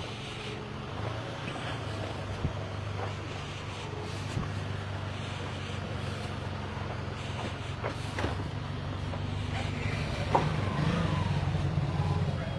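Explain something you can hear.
A car engine idles nearby with a low hum.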